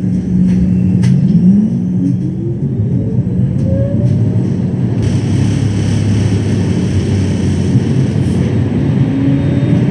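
A tram motor hums and whines higher as the tram speeds up.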